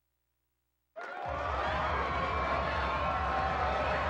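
A rock band plays a song with electric guitars and drums.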